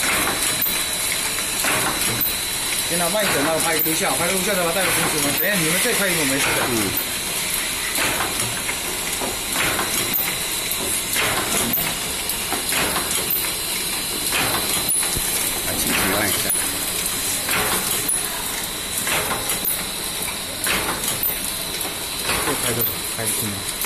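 A packaging machine clatters and hums steadily.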